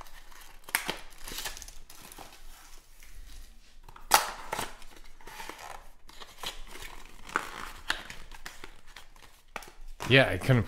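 A foil wrapper crinkles and rustles in hands.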